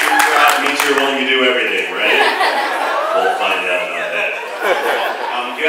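A middle-aged man speaks with animation into a microphone, heard through loudspeakers in a large hall.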